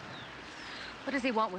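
A young woman calls out loudly outdoors.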